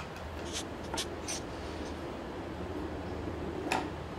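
A felt-tip pen scratches on paper.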